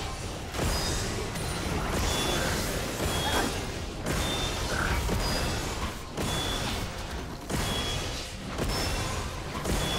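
Magic blasts and impacts crackle and thud in a busy fight.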